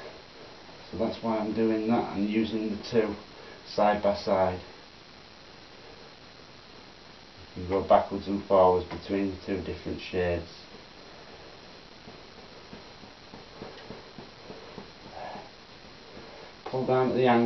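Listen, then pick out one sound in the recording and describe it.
A man talks calmly close by.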